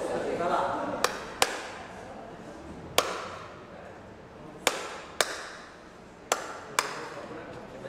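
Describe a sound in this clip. A man claps his hands sharply.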